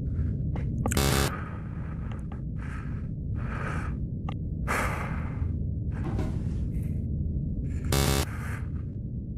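An electronic keypad gives a harsh, rattling buzz.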